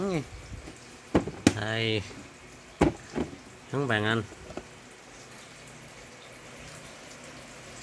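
A plastic lid clatters and scrapes against a plastic box.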